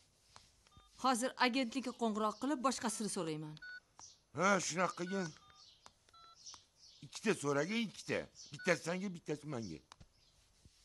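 A middle-aged woman speaks with emotion, close by.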